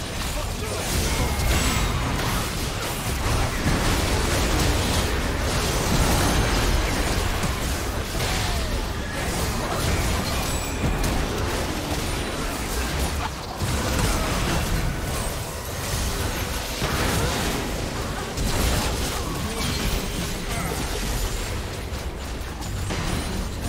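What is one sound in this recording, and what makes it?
Game spells and blows crackle and clash rapidly in a busy fight.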